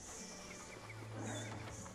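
A bird flaps its wings.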